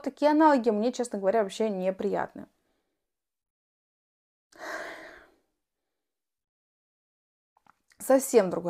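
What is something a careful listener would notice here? A young woman speaks emotionally into a close microphone.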